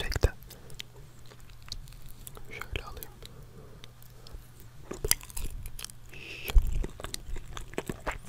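A young man chews food close to a microphone.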